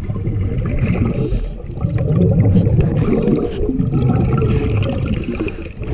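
A boat engine rumbles steadily, heard from underwater.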